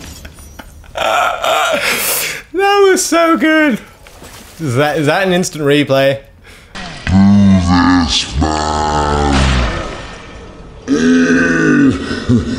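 A young man speaks with animation close to a microphone, at times shouting.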